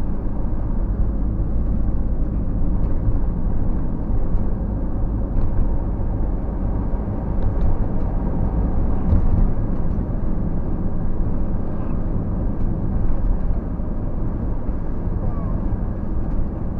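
A car engine rumbles steadily as tyres roll over the road, heard from inside the car.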